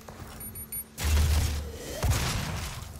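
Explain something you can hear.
A large blaster fires with a heavy roaring blast.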